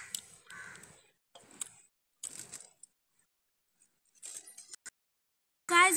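Scissors snip through leafy herbs.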